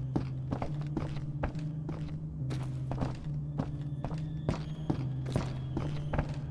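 Footsteps thud steadily on wooden stairs and floorboards.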